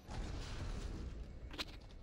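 Electricity crackles loudly.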